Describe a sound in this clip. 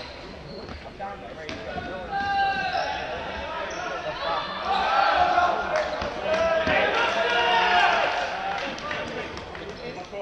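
Young men shout and call to each other across a large echoing hall.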